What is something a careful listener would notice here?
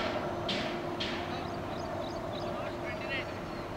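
A cricket bat knocks a ball once.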